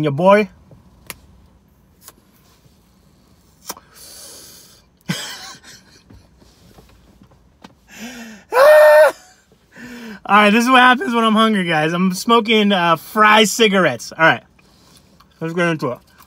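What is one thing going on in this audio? A man crunches on fried food as he chews.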